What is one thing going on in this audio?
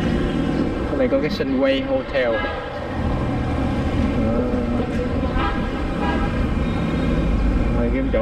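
Traffic hums steadily along a city street outdoors.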